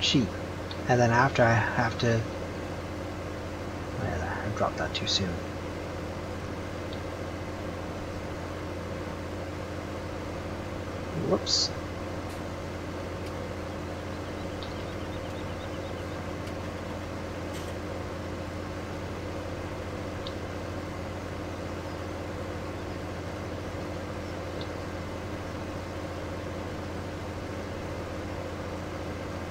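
A tractor engine hums steadily as it drives.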